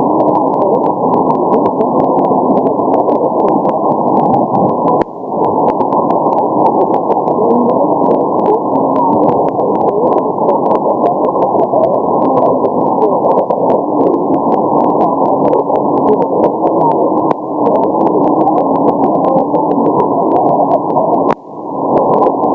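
A shortwave radio receiver hisses with dense, crackling static.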